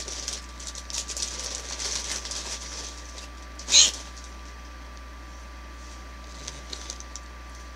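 Cardboard boxes rustle and scrape as they are handled close by.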